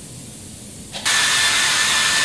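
A hair dryer blows with a loud steady whoosh.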